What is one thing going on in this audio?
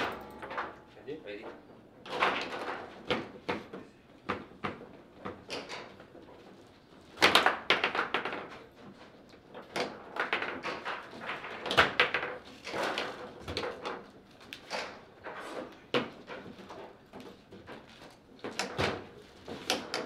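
Foosball rods clatter and the ball knocks sharply against the table's walls and figures.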